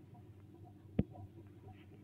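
A short digital click sounds as a card is placed.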